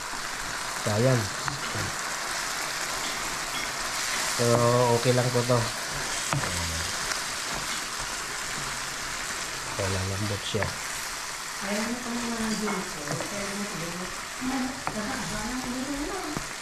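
A wooden spoon scrapes and stirs in a pan.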